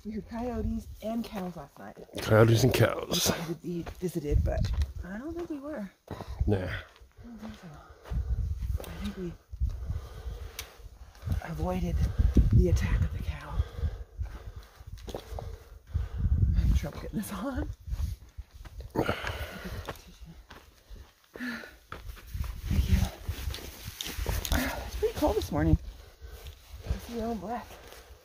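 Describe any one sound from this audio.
A woman talks casually close by, outdoors.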